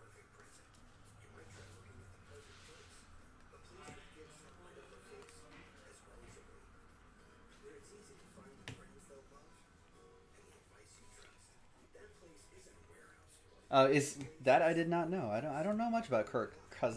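Cards rustle and slide as they are flipped through by hand.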